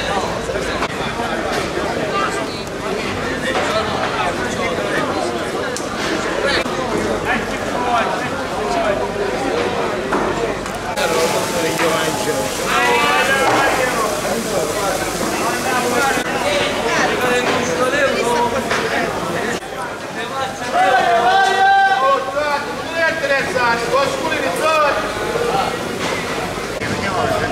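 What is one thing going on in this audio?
A crowd of men talk around the listener.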